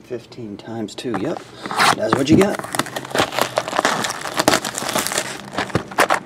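Cardboard boxes scrape and knock close by.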